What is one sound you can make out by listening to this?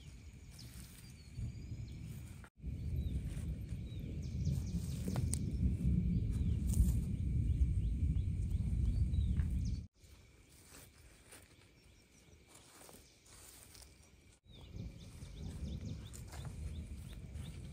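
Loose soil rustles and crumbles as a bare foot pushes it.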